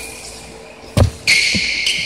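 A ball smacks against a stick with a sharp crack.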